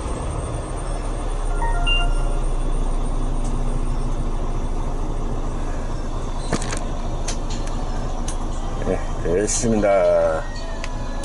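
A bus engine idles with a low, steady rumble.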